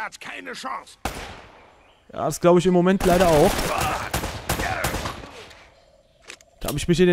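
Pistol shots ring out, one after another.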